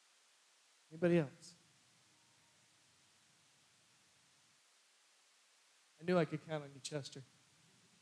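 A man speaks through a microphone in a large echoing hall.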